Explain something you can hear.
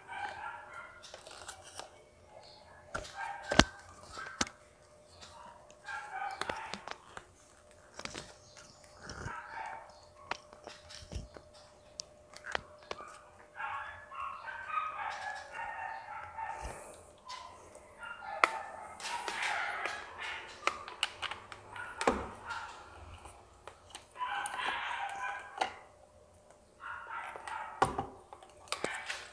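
Plastic parts click and knock as they are fitted together.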